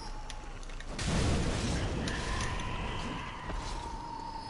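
Flames burst and roar loudly.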